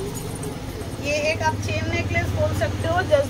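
A young woman speaks calmly close to a microphone.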